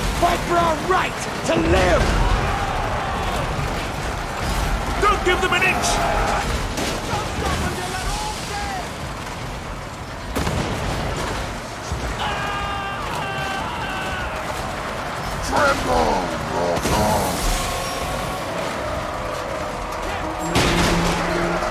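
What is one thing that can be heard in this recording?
Weapons clash and armour clanks in a noisy battle.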